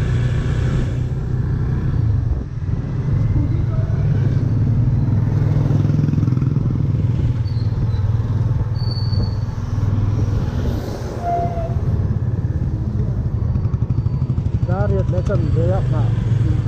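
A motorcycle engine rumbles steadily as it rides along a street.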